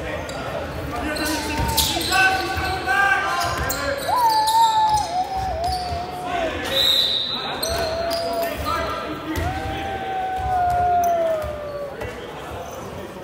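Men shout and call out across the echoing hall.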